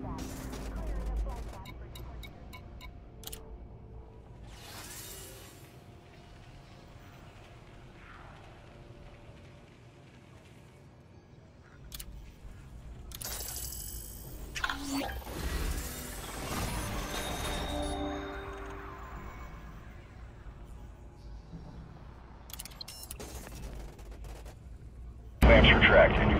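Soft electronic clicks and beeps sound as menu options are chosen.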